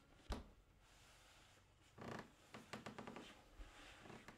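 Footsteps shuffle softly across a wooden floor.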